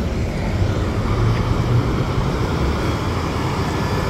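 A bus drives past with a low engine hum.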